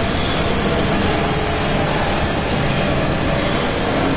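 Heavy armored footsteps clank on metal grating.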